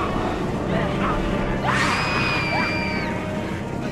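A woman cries out in distress.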